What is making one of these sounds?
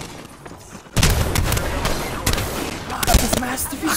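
Rapid gunfire blasts loudly.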